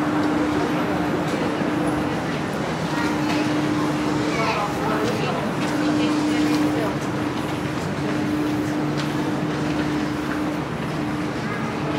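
A crowd murmurs and shuffles on a busy covered platform.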